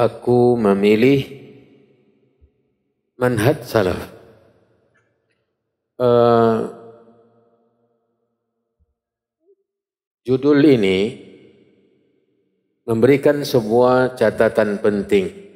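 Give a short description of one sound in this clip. A man speaks calmly into a close microphone, in short phrases with pauses, in a room with some echo.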